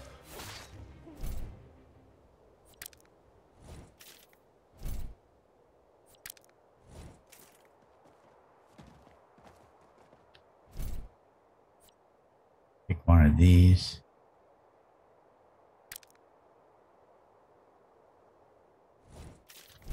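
Short game interface sounds click and whoosh.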